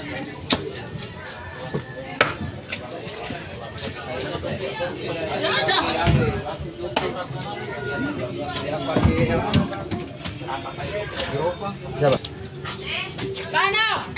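A large knife chops through fish and thuds on a wooden chopping block.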